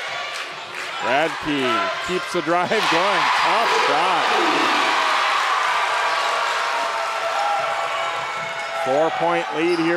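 A large crowd cheers and murmurs in an echoing gym.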